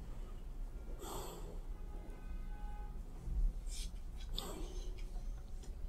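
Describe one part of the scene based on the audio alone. An elderly woman breathes heavily and slowly, close by.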